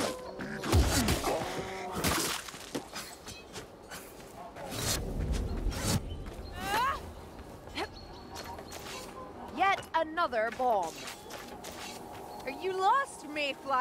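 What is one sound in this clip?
Swords swish through the air.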